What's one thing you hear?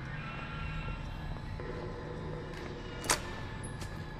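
A door bangs open.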